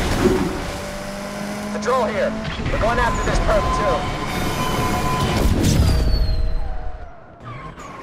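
A race car engine roars and revs at high speed.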